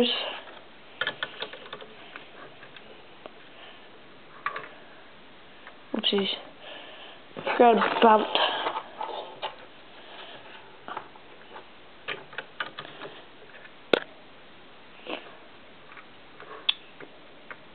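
Plastic toy pieces click and rattle as they are handled.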